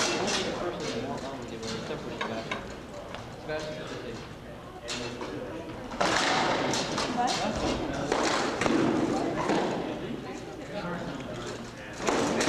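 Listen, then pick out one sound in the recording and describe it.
Weapons clash against armour and shields in sharp knocks, echoing in a large hall.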